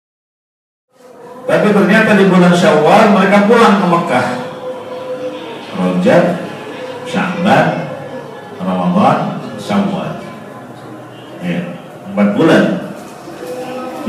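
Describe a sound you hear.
A man speaks steadily into a close microphone.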